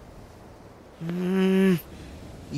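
A young boy gives a short startled sound.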